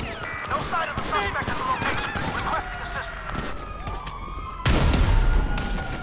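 A pistol fires.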